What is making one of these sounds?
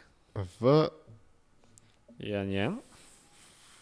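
A young man speaks calmly into a close microphone, in short bursts.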